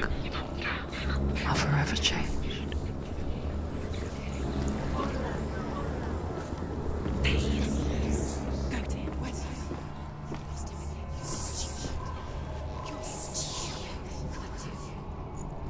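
Footsteps fall on a stone floor.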